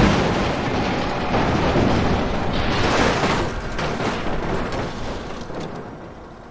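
A train roars past loudly.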